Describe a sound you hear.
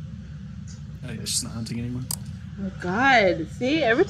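A flashlight switch clicks on.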